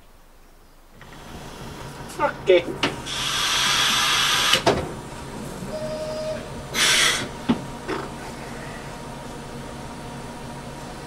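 A train's diesel engine rumbles steadily from inside the cab.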